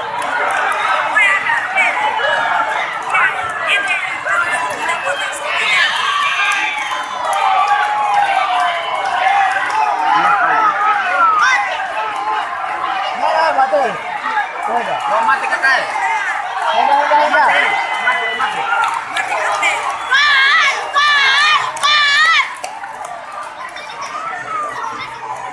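A large crowd of men and women talks and shouts outdoors.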